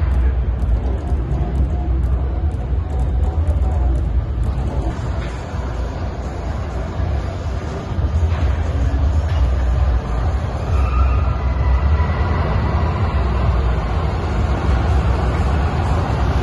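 A pickup truck's engine rumbles as it drives slowly, echoing in a large hall.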